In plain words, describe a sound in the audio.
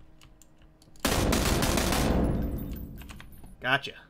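A rifle fires a loud burst that echoes away.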